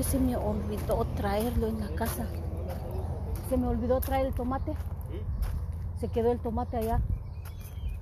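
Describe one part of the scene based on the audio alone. A woman speaks with animation, close to the microphone.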